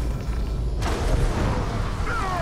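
A fire bursts up and roars.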